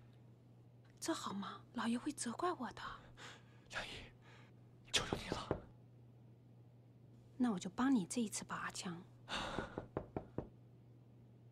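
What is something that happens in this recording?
A young woman speaks pleadingly, close by.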